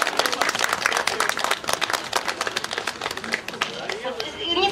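A woman claps her hands in quick rhythm.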